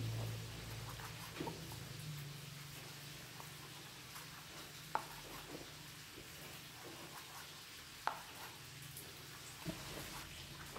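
A knife taps against a plastic cutting board as meat is sliced.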